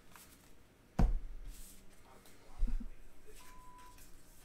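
Trading cards shuffle and slide against each other.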